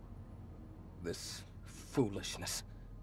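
A young man talks briefly and casually into a close microphone.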